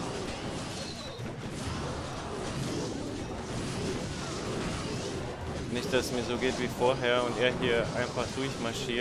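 Game battle effects crackle and thump.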